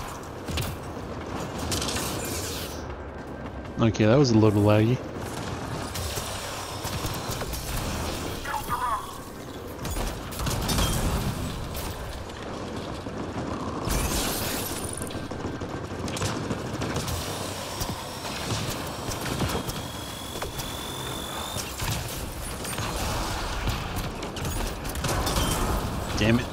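Gunfire and energy blasts crackle and boom in a fast game battle.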